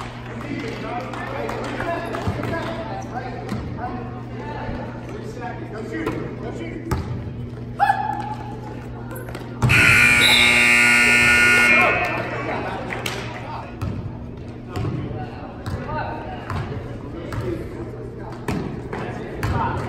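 A crowd of spectators murmurs and calls out.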